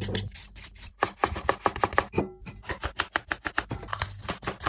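A knife chops quickly on a cutting board with sharp, rapid knocks.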